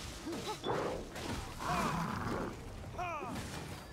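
A blade slashes with sharp hits.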